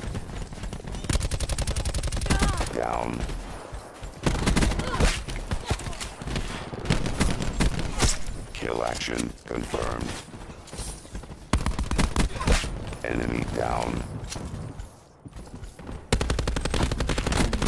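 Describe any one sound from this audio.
Rifle fire rattles in rapid bursts.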